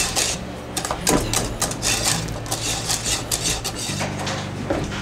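A whisk scrapes and clicks against a metal pot.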